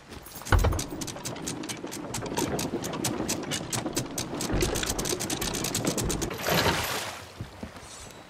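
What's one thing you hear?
A ship's capstan clicks and rattles as an anchor is raised.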